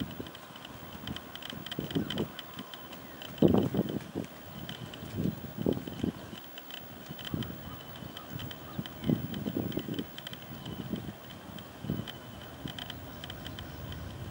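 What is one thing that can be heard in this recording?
A horse trots on soft sand, its hooves thudding dully.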